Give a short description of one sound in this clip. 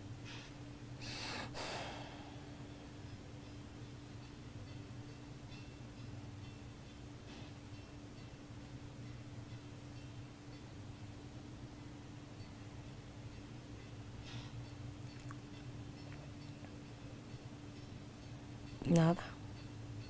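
A woman snores close by.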